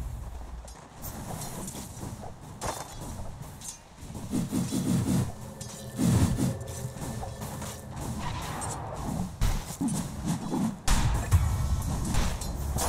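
Magic spells crackle and burst in a fast skirmish.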